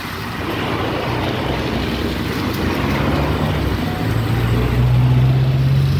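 A bus engine rumbles low and grows louder.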